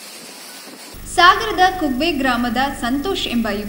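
A young woman speaks clearly and calmly into a microphone.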